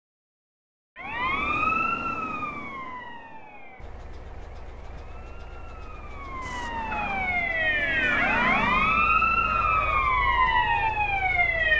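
Police sirens wail, rising and falling.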